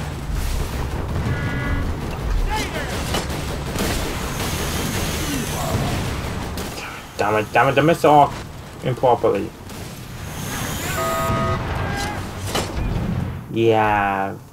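Explosions boom and gunfire rattles in a battle.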